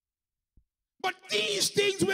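A second man begins speaking through a microphone.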